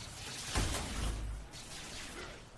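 A fiery blast bursts loudly.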